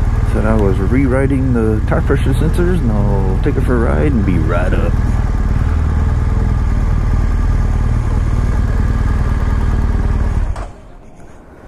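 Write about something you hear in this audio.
A motorcycle engine rumbles steadily close by, then cuts off.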